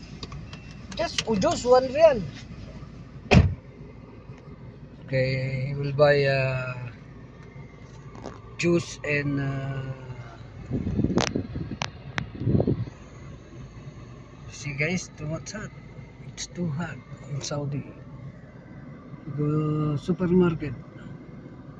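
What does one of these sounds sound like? A middle-aged man talks calmly, close to the microphone, inside a car.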